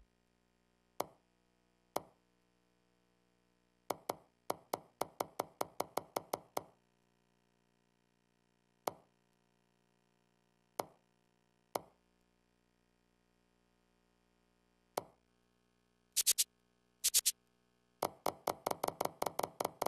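Short electronic clicks tick in quick runs as a game menu scrolls.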